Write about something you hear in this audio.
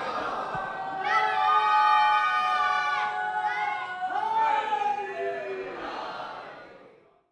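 A crowd of men chants together in reply.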